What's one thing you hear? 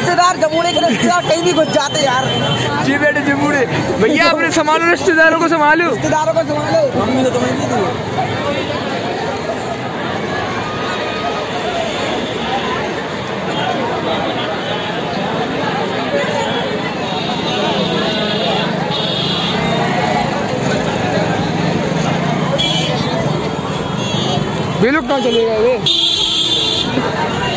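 A crowd chatters in a busy street outdoors.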